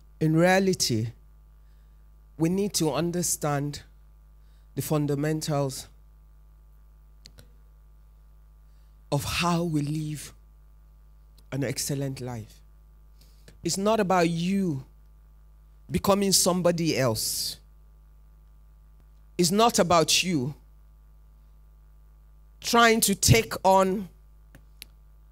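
A woman speaks calmly into a microphone in short phrases, with pauses between them.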